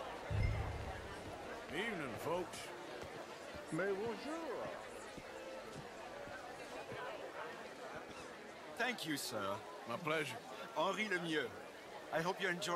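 Party guests chatter in a murmur outdoors.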